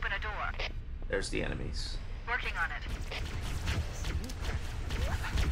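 Video game gunfire zaps and crackles.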